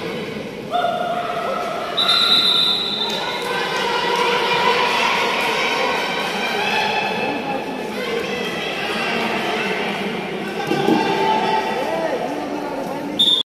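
A crowd of spectators chatters and cheers.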